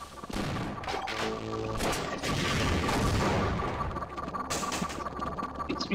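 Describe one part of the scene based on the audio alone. A machine gun fires rapid bursts.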